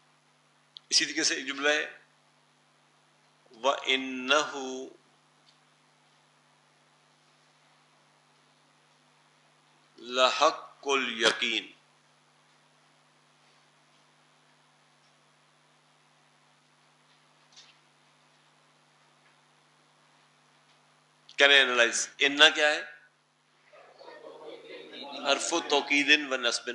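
An elderly man speaks calmly through a microphone, in short bursts with long pauses.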